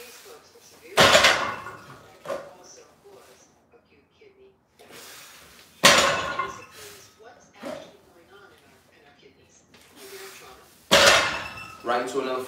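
A loaded barbell thuds heavily onto the floor, and its weight plates clang.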